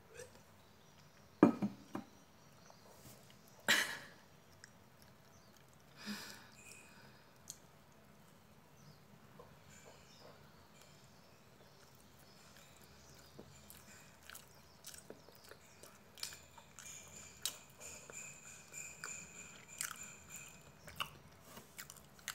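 A woman chews food with her mouth closed.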